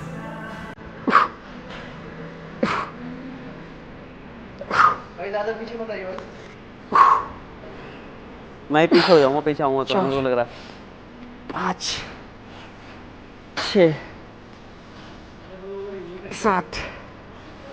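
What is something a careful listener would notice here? A man exhales sharply and loudly with each lift, close by.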